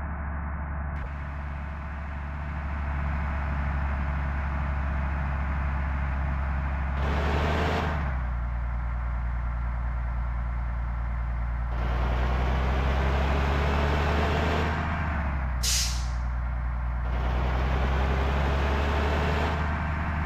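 A diesel coach bus engine drones as it cruises in a driving game.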